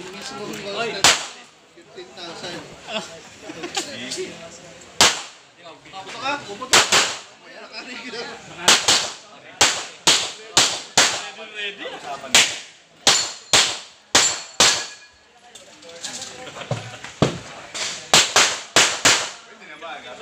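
Pistol shots crack in quick bursts outdoors.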